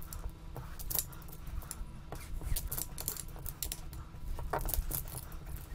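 Plastic tiles click and clack against each other on a table.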